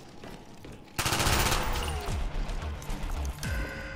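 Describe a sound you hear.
Gunfire rattles loudly in a video game.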